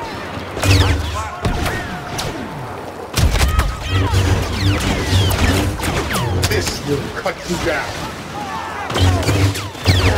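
A lightsaber hums and swings.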